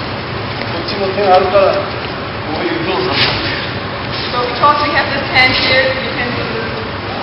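An elderly man speaks calmly in an echoing hall.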